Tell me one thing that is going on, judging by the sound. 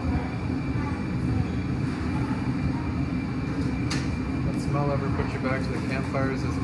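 A glass furnace roars steadily.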